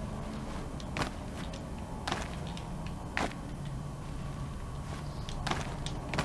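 Hands grab onto rock with short scraping thuds as someone climbs.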